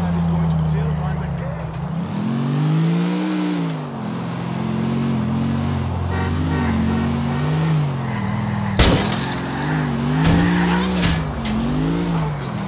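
A pickup truck engine hums and revs up and down as it drives.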